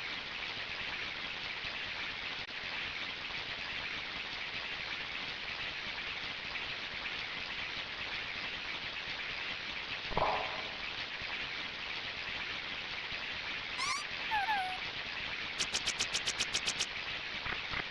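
Water rushes steadily in a stream.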